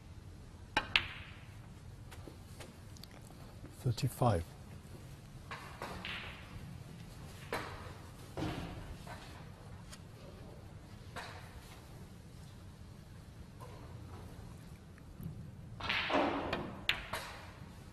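Billiard balls click against each other.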